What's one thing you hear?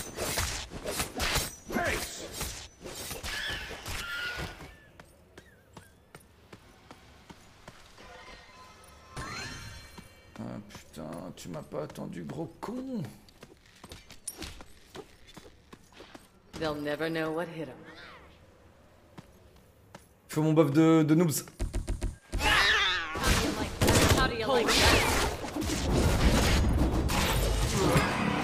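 Game combat effects clash and blast.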